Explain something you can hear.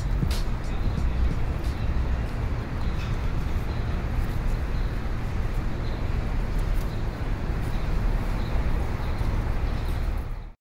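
Footsteps scuff on pavement outdoors.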